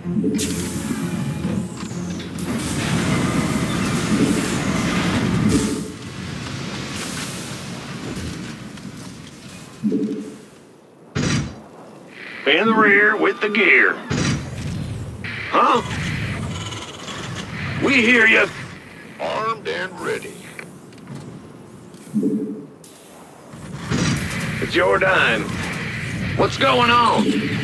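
Machines whir and clank as structures are built.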